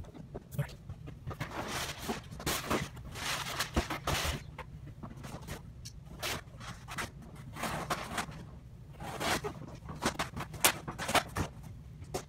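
A cardboard box rustles and scrapes close by.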